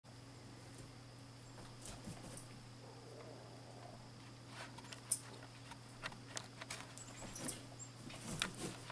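Two dogs scuffle and paw at each other on a soft couch.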